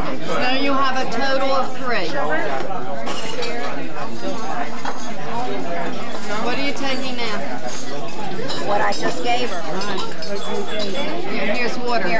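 Cutlery clinks against dishes.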